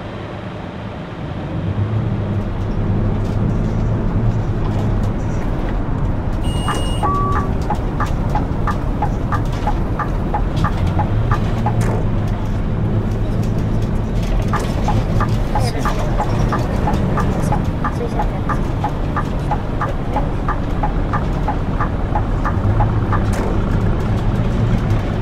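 A bus engine hums steadily while driving.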